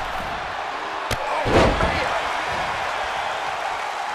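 Heavy thuds of bodies slamming onto a mat.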